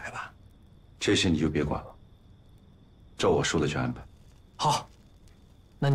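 A second man answers firmly, close by.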